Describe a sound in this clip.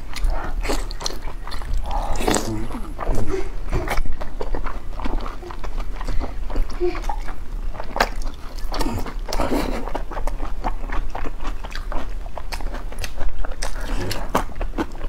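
A young woman chews food wetly, close to the microphone.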